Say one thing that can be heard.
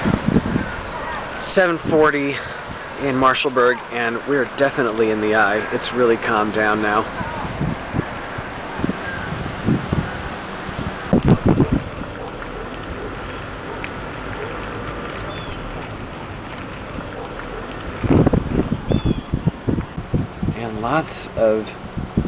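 Rain patters steadily on wet ground.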